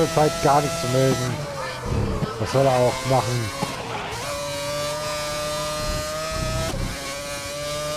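A racing car engine screams at high revs, shifting gears as it speeds along.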